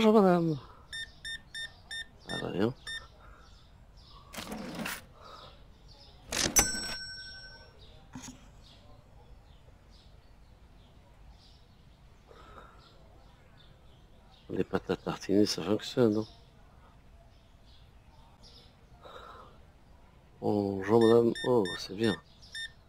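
A checkout scanner beeps in short, quick bursts.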